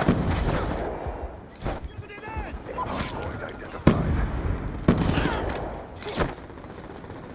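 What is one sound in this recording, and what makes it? Gunshots crack in loud, quick bursts.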